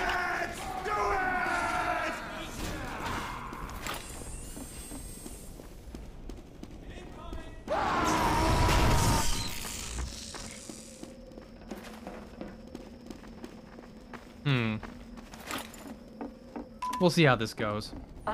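Footsteps tap on hard floors.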